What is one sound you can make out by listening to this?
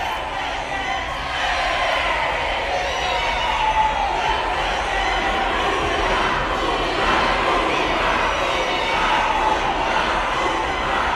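A large crowd of men and women chants a name in unison, loud and echoing in a large hall.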